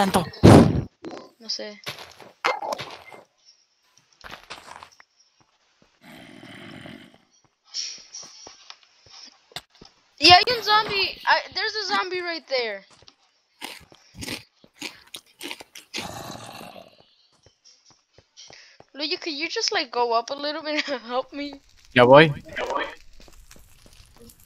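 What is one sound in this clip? Footsteps patter on grass and stone.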